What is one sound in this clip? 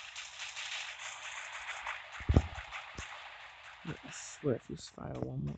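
Footsteps run quickly across grass.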